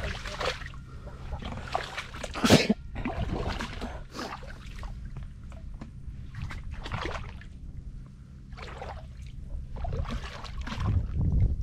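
Wet mud squelches underfoot.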